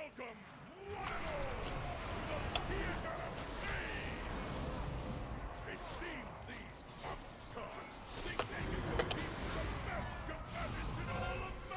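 Weapons clash and strike.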